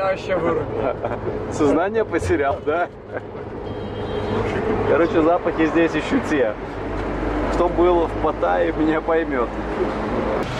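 Men talk and laugh nearby.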